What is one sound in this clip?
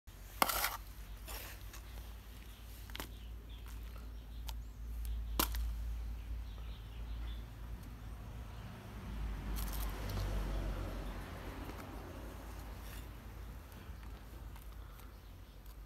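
A trowel scrapes and scoops soil.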